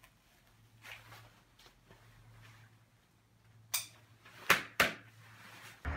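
Hands rustle against a helmet and jacket.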